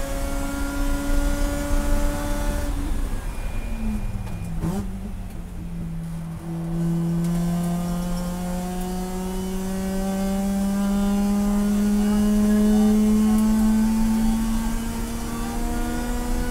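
A race car engine roars loudly from inside the cabin.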